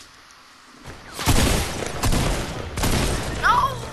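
Shotgun blasts boom in quick bursts.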